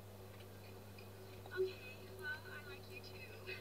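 A young woman speaks into a phone with surprise.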